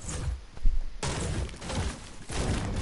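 A pickaxe strikes a tree trunk with hollow knocks.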